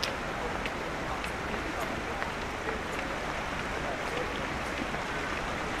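Footsteps click on stone pavement.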